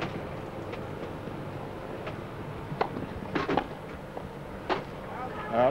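A tennis ball is struck sharply by rackets back and forth.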